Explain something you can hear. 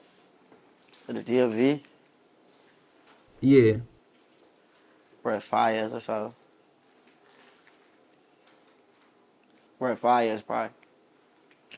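A young man speaks calmly in short phrases close to a microphone.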